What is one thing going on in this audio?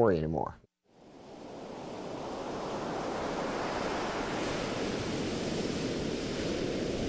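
Water laps softly against a shore.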